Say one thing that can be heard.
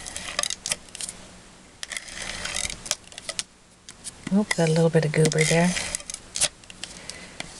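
Paper rustles and crinkles as a hand handles it.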